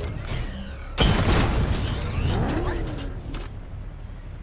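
A heavy armoured vehicle's engine roars and rumbles loudly.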